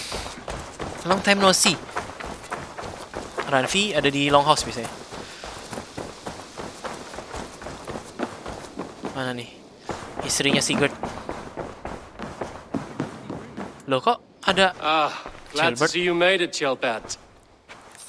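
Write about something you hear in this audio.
A young man talks close to a microphone, in short bursts.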